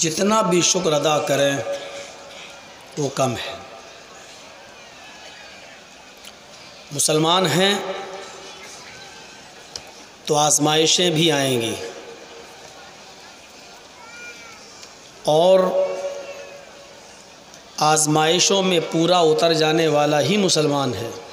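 A man preaches with emotion into a microphone, in bursts through a loudspeaker with an echo.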